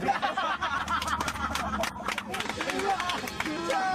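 Hands clap rapidly.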